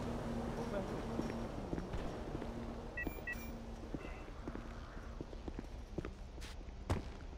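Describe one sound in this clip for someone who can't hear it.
Footsteps scuff on hard pavement.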